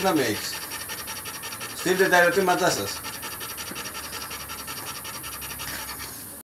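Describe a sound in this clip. A dog pants rapidly and steadily.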